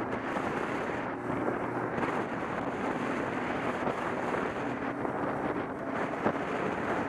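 Wind rushes loudly past a motorcycle on the move.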